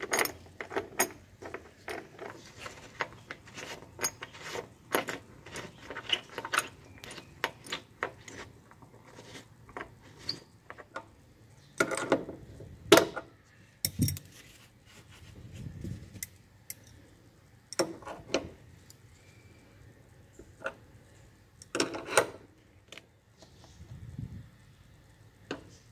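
Metal parts click and clink as a bolt is turned by hand.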